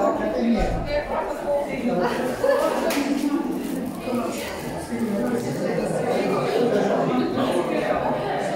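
Several adults chat at once in a busy room, nearby and in the background.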